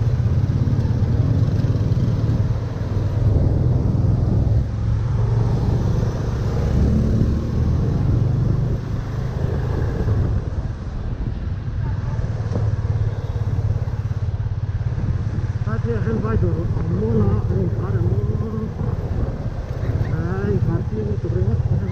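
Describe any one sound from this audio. Wind rumbles against the rider.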